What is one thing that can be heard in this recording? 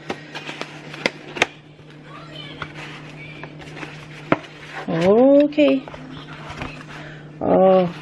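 Cardboard rustles and taps close by under a hand.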